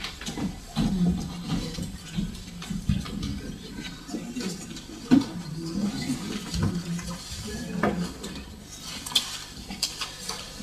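Objects knock and rustle on a desk.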